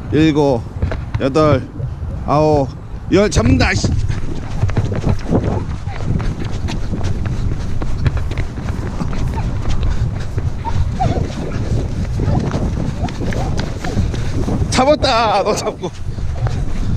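A young child shouts excitedly nearby.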